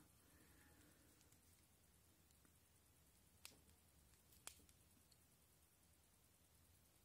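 A plastic tool clicks and scrapes against a phone's insides.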